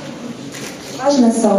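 A young woman speaks brightly through a microphone.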